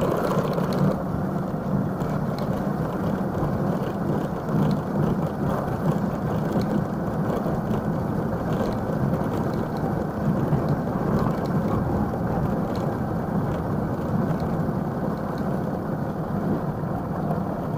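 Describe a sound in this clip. Tyres rumble steadily over cobblestones.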